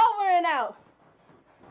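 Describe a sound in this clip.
A woman's voice cries out in a high, sliding wail, close to the microphone.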